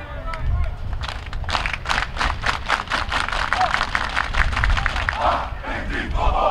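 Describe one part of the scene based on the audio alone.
A team of young men claps in a fast rhythm.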